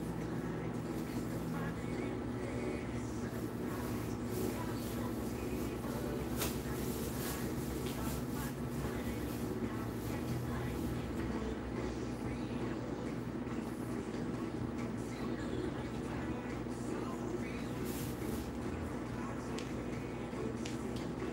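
A machine hums steadily nearby.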